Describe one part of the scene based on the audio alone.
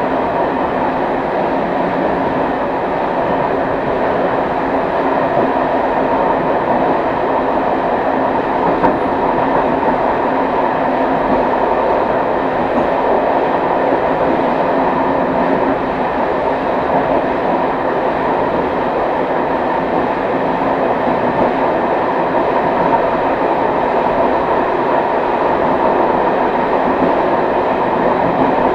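A train rumbles steadily along the rails, heard from inside the cab.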